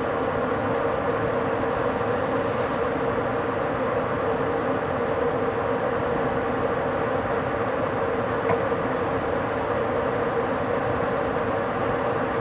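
A train rolls steadily along the rails at speed with a constant rumble and hum.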